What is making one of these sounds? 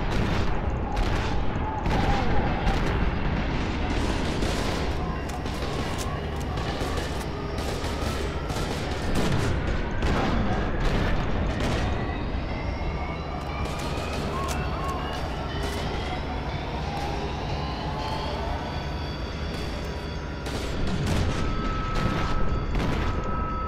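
Gunfire bursts out in rapid, loud shots.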